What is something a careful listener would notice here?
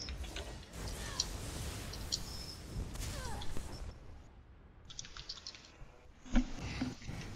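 Magic spells crackle and burst during a fight.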